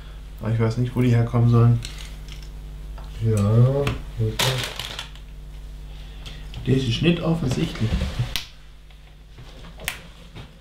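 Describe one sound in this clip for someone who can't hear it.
Small plastic pieces click and rattle as hands sort through them.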